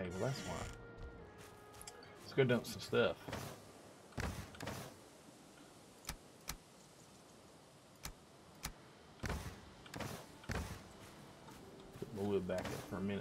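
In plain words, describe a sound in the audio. A middle-aged man speaks casually into a close microphone.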